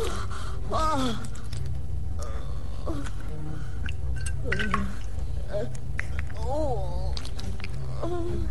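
An elderly woman moans and speaks weakly close by.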